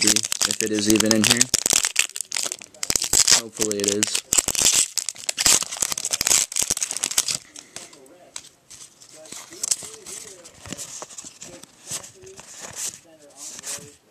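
Playing cards rustle and scrape close by.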